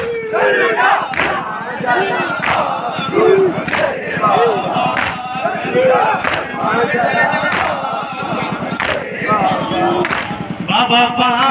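A crowd of men beat their chests in a steady, slow rhythm.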